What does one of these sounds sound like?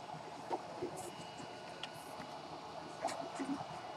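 A finger taps on a touchscreen.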